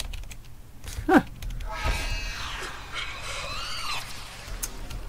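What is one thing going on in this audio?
Electricity crackles and buzzes loudly in sharp bursts.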